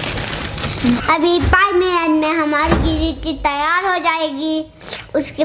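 A young boy speaks clearly and close by.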